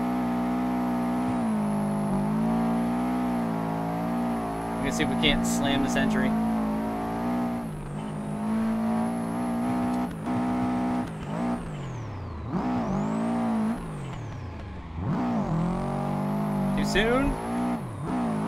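A car engine roars and revs up and down.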